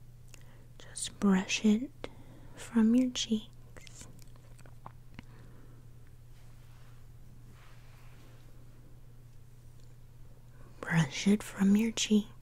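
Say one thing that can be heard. A woman whispers softly close to a microphone.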